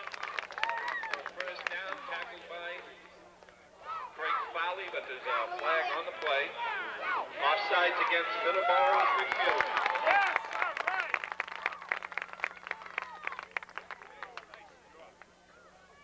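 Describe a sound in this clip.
A crowd of adults and children shouts and cheers outdoors.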